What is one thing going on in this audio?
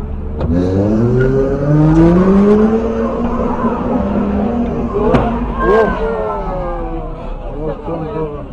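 A car engine hums steadily in traffic.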